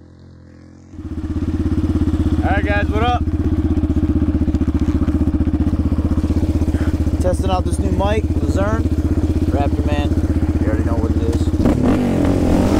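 A quad bike engine rumbles steadily up close.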